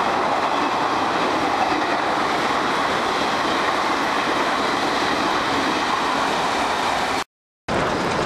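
A train rolls slowly along the track.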